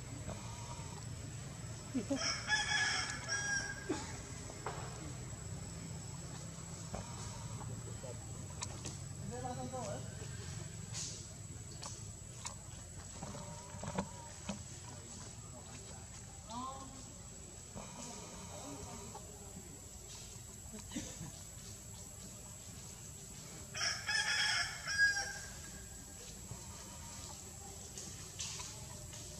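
Leaves rustle as monkeys climb among tree branches.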